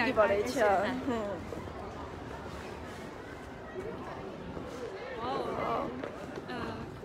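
Young women chatter and laugh nearby.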